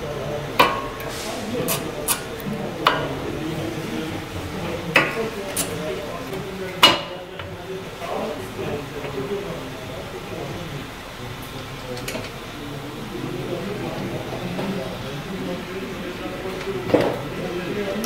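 Metal parts clink and knock as brake pads are fitted into a caliper.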